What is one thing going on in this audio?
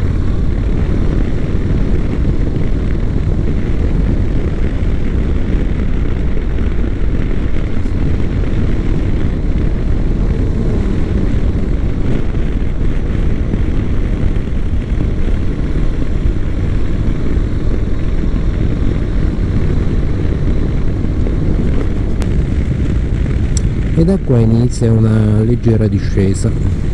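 Wind buffets and roars loudly past a moving motorcycle.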